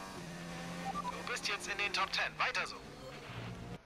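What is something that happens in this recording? Tyres screech briefly on tarmac.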